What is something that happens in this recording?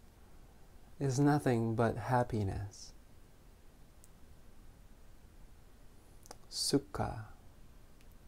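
A man speaks calmly and softly nearby, in short phrases.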